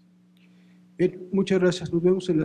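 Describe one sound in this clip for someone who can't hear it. A man speaks loudly through a microphone in a large room.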